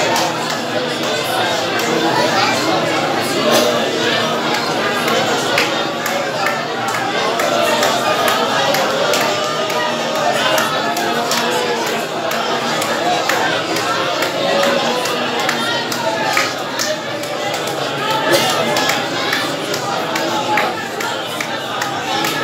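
A crowd of men and women murmur and chatter in a large room.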